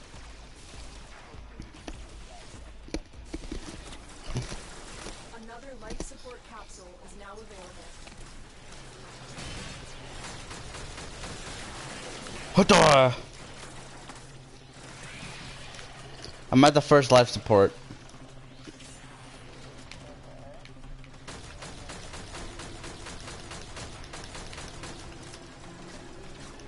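Gunshots and blade strikes from a video game crack and clang.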